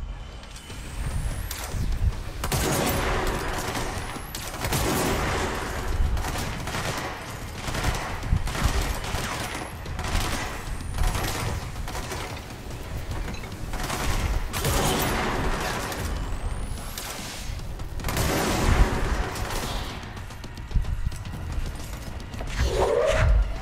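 Gunshots fire in loud, repeated bursts.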